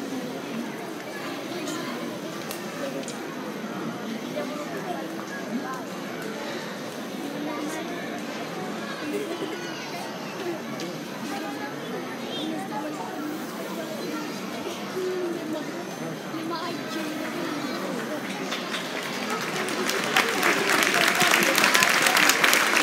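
An audience murmurs and chatters in a large hall.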